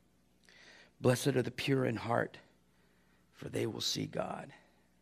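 A middle-aged man speaks calmly into a microphone, reading out.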